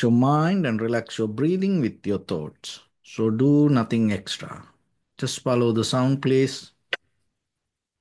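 A man speaks calmly and slowly, heard close through a microphone.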